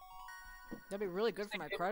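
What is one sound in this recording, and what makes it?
A game jingle chimes at a level-up.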